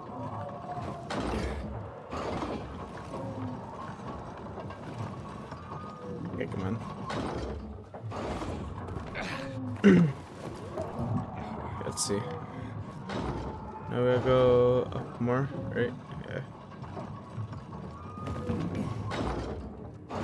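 Hands grab and thump against wooden beams while climbing.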